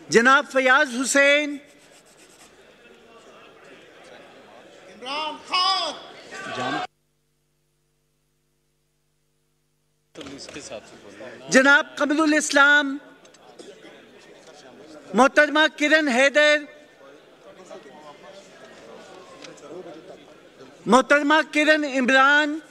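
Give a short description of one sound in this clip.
A man speaks steadily through a microphone in a large echoing hall.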